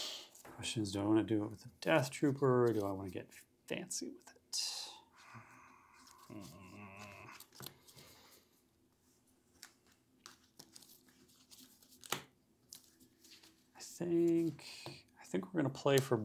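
Playing cards are shuffled in the hands.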